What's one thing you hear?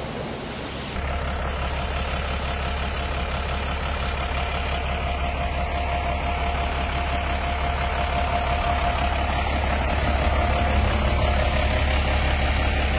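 A truck engine idles nearby with a low, steady rumble.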